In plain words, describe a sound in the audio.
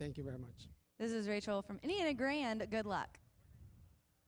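A young woman speaks brightly into a microphone.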